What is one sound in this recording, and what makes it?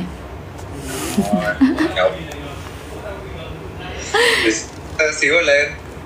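A young woman speaks cheerfully and close by.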